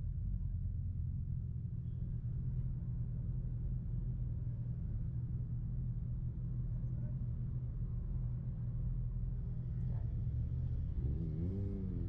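A motorcycle engine idles close by with a steady low rumble.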